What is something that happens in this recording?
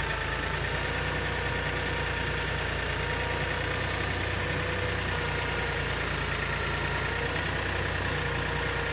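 A tractor engine idles steadily close by.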